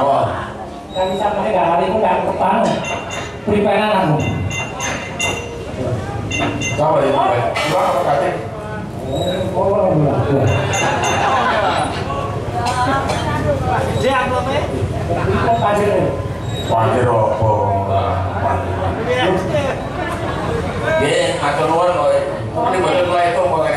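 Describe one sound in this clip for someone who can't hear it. Gamelan instruments play a ringing accompaniment.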